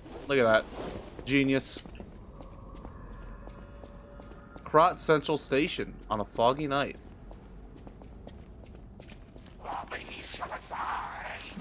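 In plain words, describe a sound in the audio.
Footsteps tread on a hard stone floor.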